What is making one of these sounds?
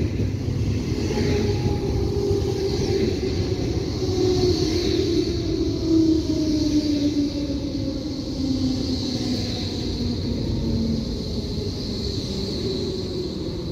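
Train brakes squeal with a falling whine as the train slows.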